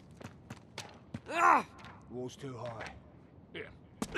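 A man sighs.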